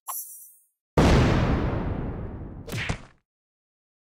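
A magical whooshing blast sounds in a mobile game.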